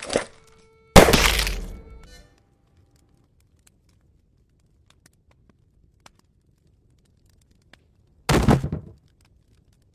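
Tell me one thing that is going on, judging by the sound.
A revolver fires a loud shot that rings out briefly.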